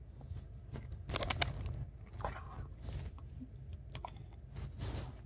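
A dog chews a treat noisily.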